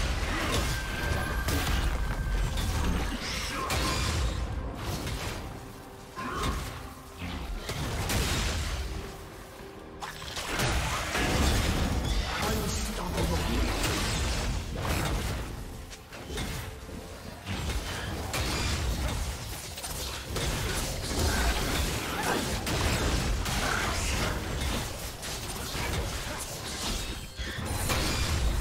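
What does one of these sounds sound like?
Swords and blows clash in a game battle.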